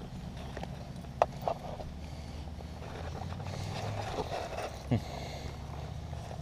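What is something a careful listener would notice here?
A small dog sniffs and snuffles right up close.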